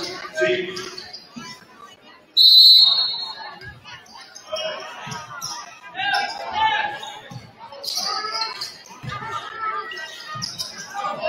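A crowd murmurs and calls out in an echoing gym.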